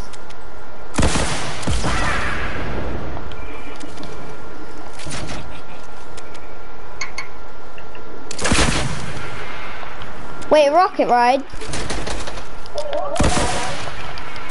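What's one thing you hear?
Gunshots crack sharply now and then.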